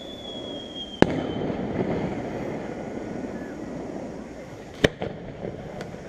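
A firework bursts with a loud bang that rumbles and echoes far off.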